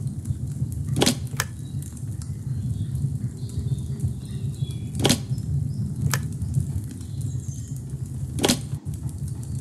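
A small metal figurine clinks down onto a metal plate.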